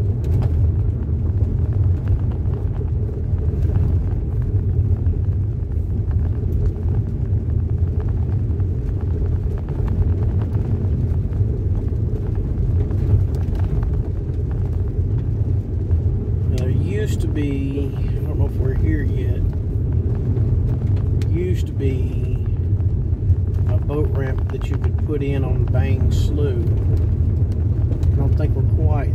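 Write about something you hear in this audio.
Tyres crunch and roll over a dirt road.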